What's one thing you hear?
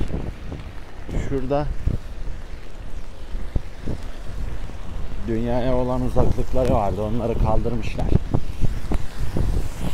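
Car tyres hiss past on a wet road.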